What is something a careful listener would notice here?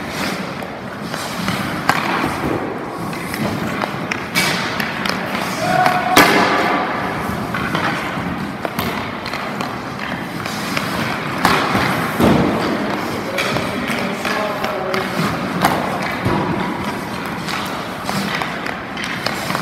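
Skate blades scrape and carve on ice.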